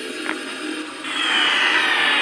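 A loud rushing whoosh swells up at the end.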